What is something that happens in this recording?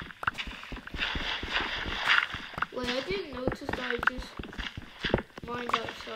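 Blocks of earth crack and crumble as they are dug.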